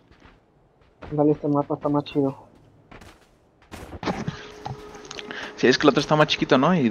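A young man talks with animation close to a microphone.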